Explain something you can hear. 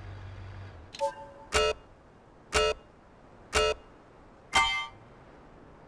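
Countdown beeps sound in steady succession.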